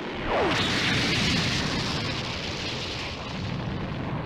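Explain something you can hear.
Debris and dust rush and hiss outward.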